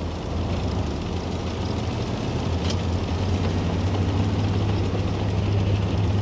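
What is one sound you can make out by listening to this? Tank tracks clatter and rattle over the ground.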